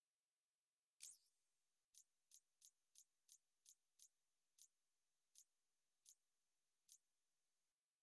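Short, high menu clicks tick again and again as a setting is changed.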